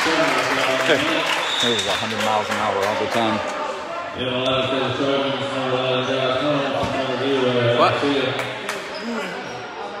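Spectators shout and cheer in an echoing gym.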